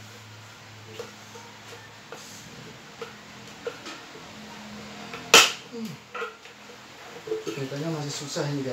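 Hard plastic parts click and knock close by as they are handled.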